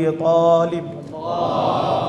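A man chants in a long, melodic voice through a microphone.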